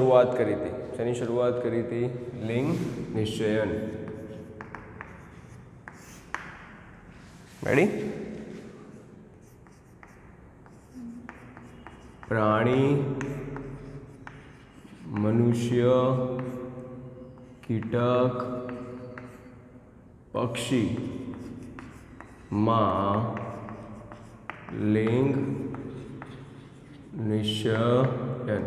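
A man speaks clearly and steadily, close by.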